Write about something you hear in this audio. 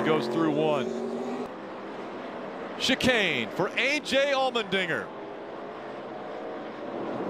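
Race car engines roar along a wet track.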